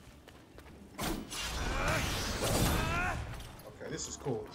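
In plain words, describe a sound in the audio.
A video game blast whooshes loudly.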